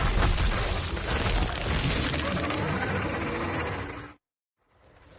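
A creature roars loudly.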